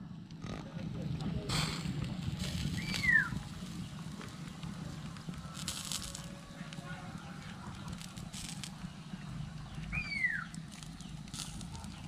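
A wood fire crackles and roars steadily outdoors.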